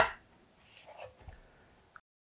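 A small device is set down on a desk with a soft knock.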